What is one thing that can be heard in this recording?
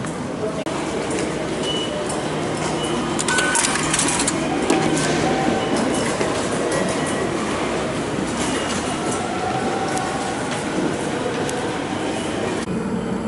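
A busy station crowd murmurs in an echoing hall.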